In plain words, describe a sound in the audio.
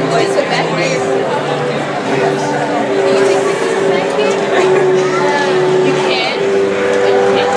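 An audience murmurs softly in a large echoing hall.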